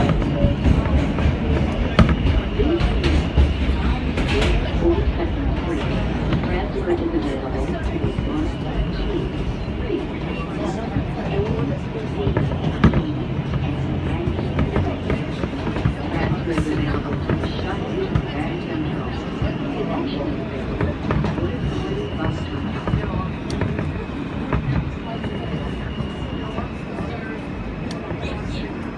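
A subway train rumbles steadily along a platform.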